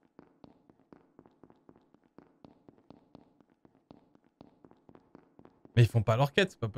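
Quick soft footsteps patter steadily.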